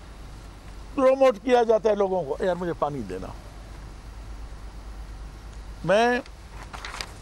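A middle-aged man speaks with emphasis into microphones.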